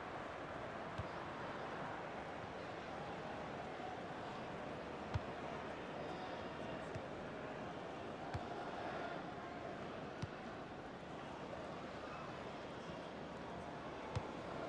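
A football is kicked with short dull thumps.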